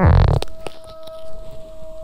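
A spoon scoops softly into baked rice.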